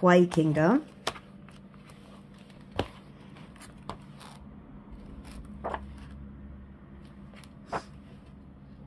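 Paper pages rustle and turn.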